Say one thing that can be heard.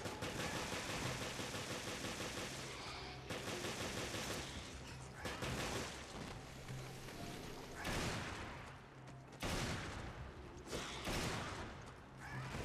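A monster growls and snarls.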